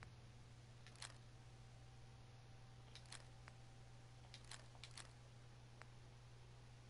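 Short menu clicks tick now and then as items are selected.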